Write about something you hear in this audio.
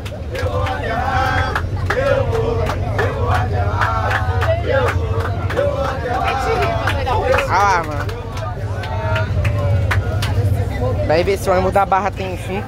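Hands clap in rhythm.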